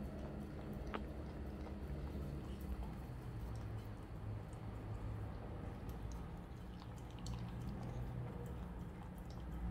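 A dog licks a plate with wet lapping sounds.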